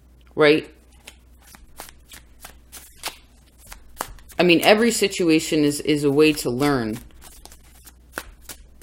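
Cards shuffle and tap softly.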